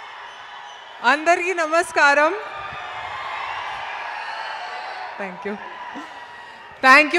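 A young woman speaks with animation into a microphone over loudspeakers.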